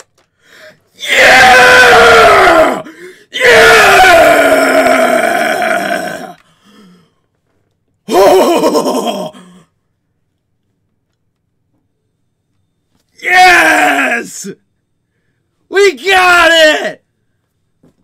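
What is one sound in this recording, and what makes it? A young man shouts and yells excitedly into a microphone.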